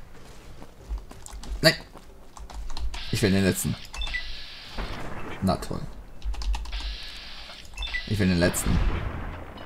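A heavy gun fires with loud booming blasts.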